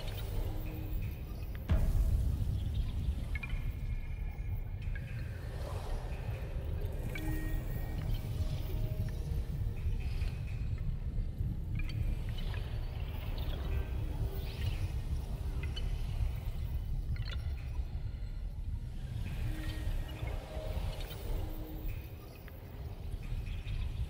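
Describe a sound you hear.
Short soft chimes sound as menu options are selected.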